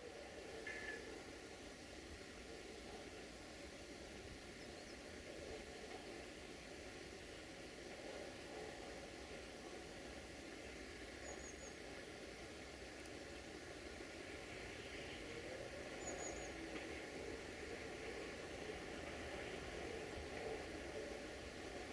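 A train engine rumbles as it approaches from a distance, growing slowly louder.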